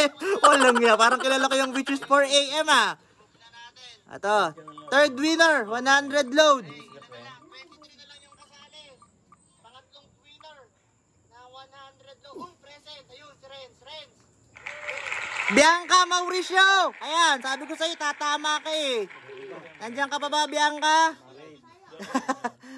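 A young man talks with excitement close by.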